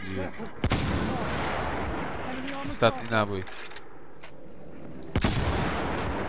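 A rifle fires sharp single shots.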